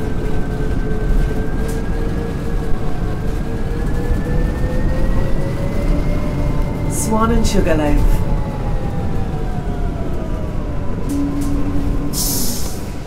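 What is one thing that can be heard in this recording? A bus engine hums and whines, rising and falling in pitch as the bus speeds up and slows down.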